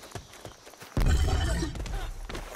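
Rocks tumble and crash loudly.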